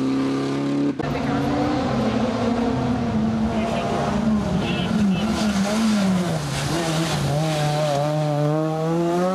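A rally car engine roars closer, revving high and dropping as it brakes into a bend.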